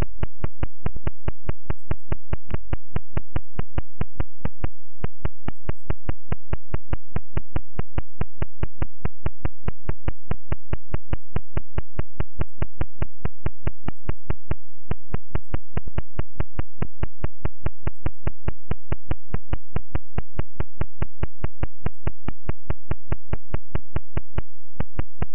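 A retro computer game plays a fast, steady ticking beat.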